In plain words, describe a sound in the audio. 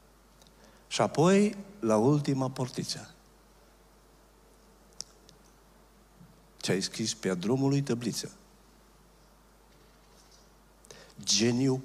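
A middle-aged man speaks with emphasis into a microphone, with pauses between phrases.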